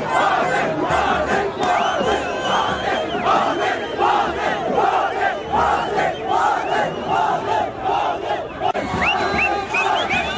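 A large crowd of men chants loudly in rhythm outdoors.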